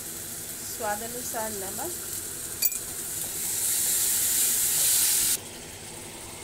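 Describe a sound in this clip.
Water pours into a sizzling pan.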